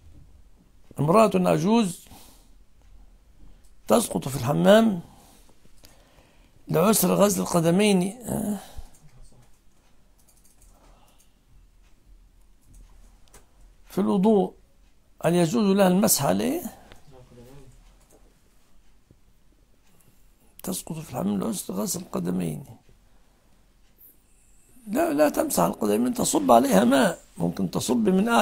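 An elderly man speaks calmly into a close microphone, in phrases broken by pauses.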